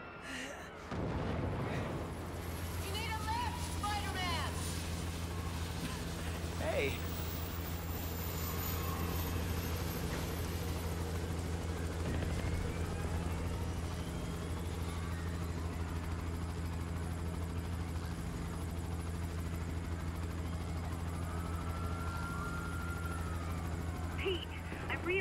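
A helicopter's rotor thrums steadily close by.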